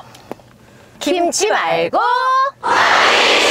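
Two young women exclaim playfully up close.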